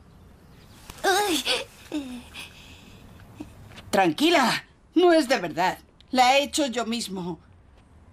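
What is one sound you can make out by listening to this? A young woman speaks emotionally nearby.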